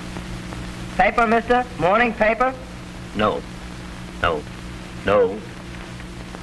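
A middle-aged man speaks, heard through an old, humming recording.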